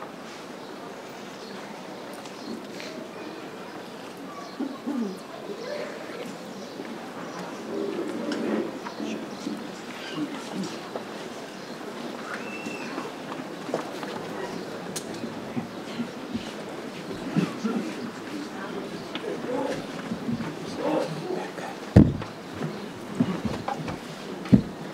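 A crowd murmurs and chatters nearby outdoors.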